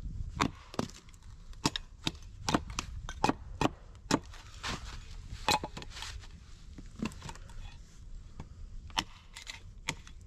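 An axe chops into a log with sharp, repeated knocks.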